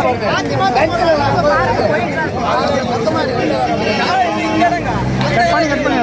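A crowd of young men talk and shout over one another nearby outdoors.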